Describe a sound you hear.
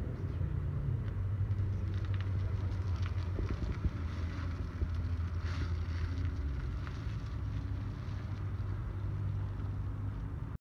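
Tyres roll over pavement.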